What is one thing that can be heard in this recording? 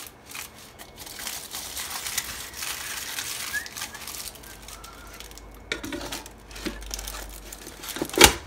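Foil crinkles and rustles.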